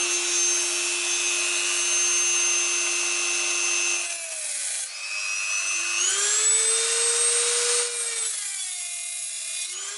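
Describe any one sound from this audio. A cutting wheel grinds against metal.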